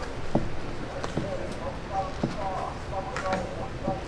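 A knife slices through soft food on a cutting board.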